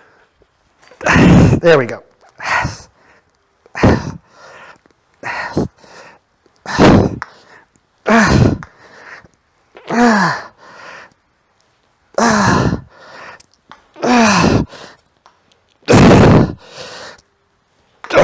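A man grunts and breathes out hard with effort, again and again.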